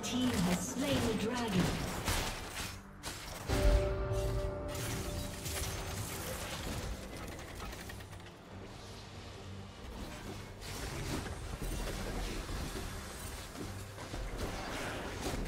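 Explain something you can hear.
Magic spell effects whoosh and crackle.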